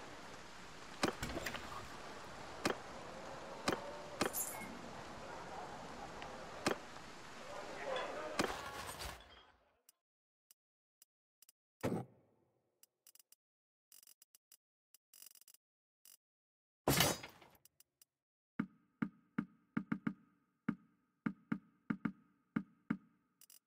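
Game menu buttons click sharply, one after another.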